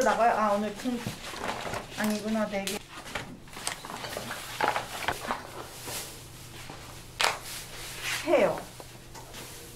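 Cardboard sheets scrape and thump on a table.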